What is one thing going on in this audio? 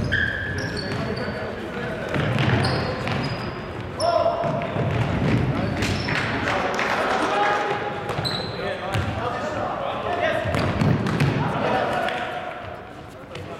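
Young men shout to each other at a distance in a large echoing hall.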